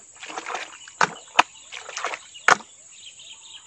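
Hands splash and slosh in shallow muddy water.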